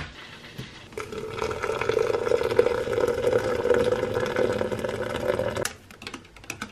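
Hot water pours into a glass pot.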